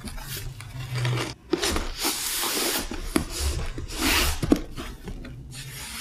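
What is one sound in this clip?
A cardboard box scrapes and thumps as it is moved.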